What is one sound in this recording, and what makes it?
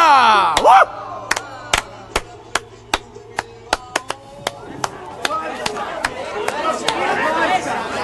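Several people clap their hands in a steady rhythm.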